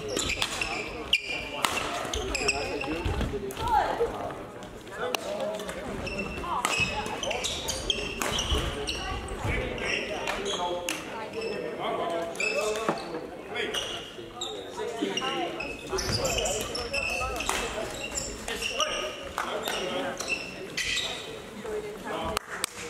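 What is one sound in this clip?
Crowd voices murmur around a large echoing hall.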